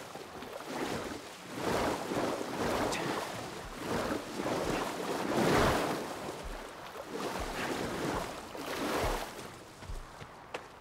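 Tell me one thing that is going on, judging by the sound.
Water splashes with steady swimming strokes.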